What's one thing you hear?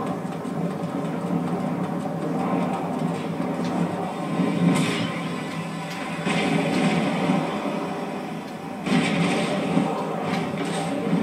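A car engine roars steadily through a speaker.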